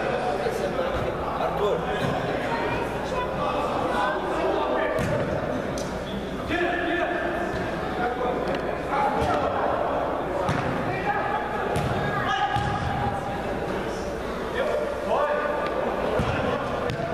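A ball thuds when kicked.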